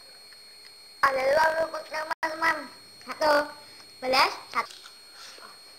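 A girl talks and laughs close by.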